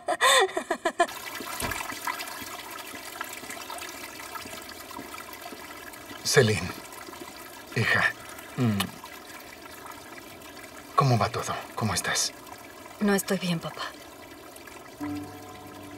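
A fountain splashes and trickles steadily outdoors.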